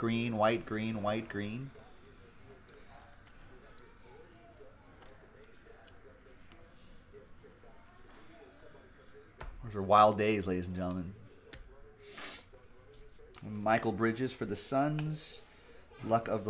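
Trading cards shuffle and slide against each other in hand.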